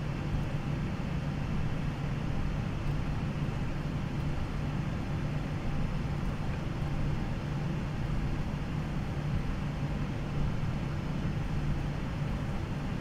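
Jet engines hum steadily at idle as an airliner taxis.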